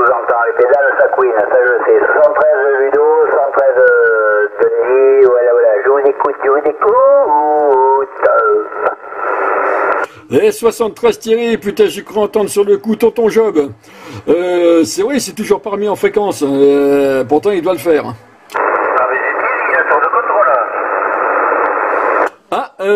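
A radio receiver crackles with static.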